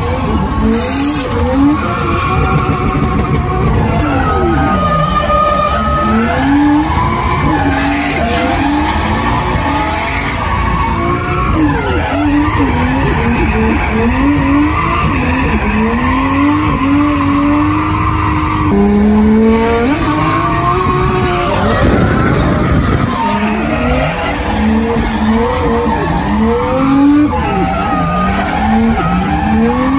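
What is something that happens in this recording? A drift car's engine revs hard and drops, heard from inside the cabin.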